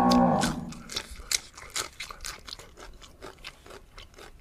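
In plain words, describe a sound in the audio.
Crisp vegetables crunch as a man bites them.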